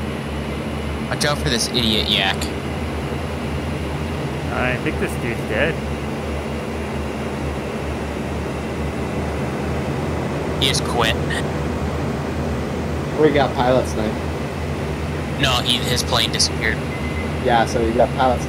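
A propeller engine drones steadily inside a cockpit.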